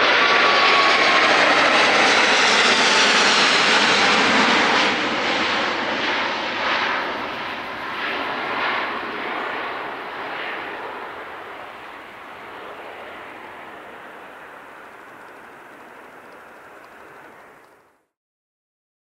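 A jet airliner roars loudly overhead and fades as it climbs away.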